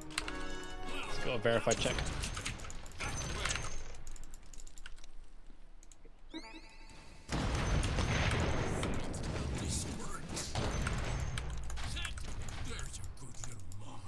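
Game spell effects and battle sounds whoosh and crash in bursts.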